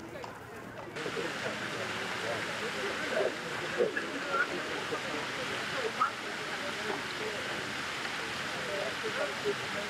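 An older woman talks with people outdoors.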